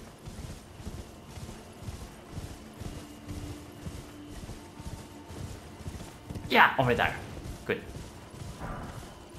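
Horse hooves thud in a steady gallop over grass.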